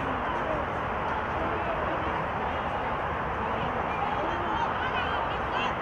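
Young women shout to each other in the distance across an open field.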